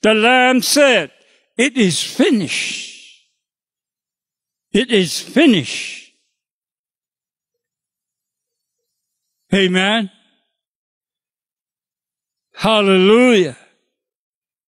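An elderly man speaks into a microphone in short, emphatic bursts with long pauses.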